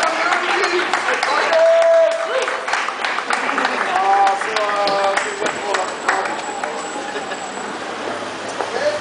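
Young men sing loudly together outdoors on a street.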